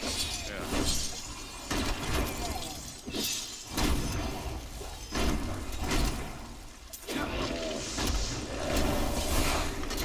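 Spell blasts and combat sound effects crackle and thump.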